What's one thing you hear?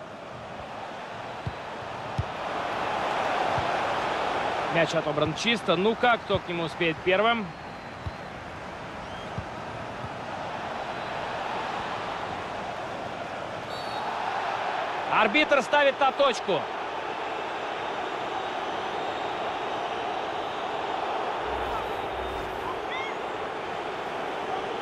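A large stadium crowd roars and murmurs steadily throughout.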